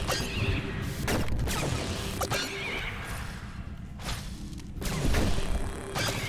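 A laser zaps in short bursts.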